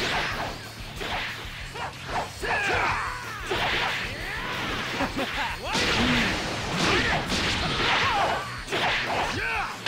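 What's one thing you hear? Punches and kicks thud in quick bursts.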